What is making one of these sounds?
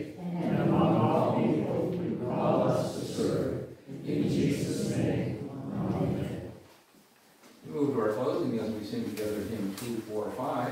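A congregation sings a hymn together in a room.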